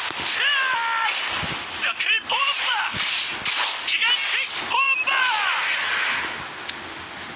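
Magical blasts whoosh and crackle in quick bursts.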